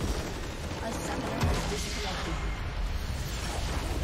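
A large crystal explodes with a deep boom.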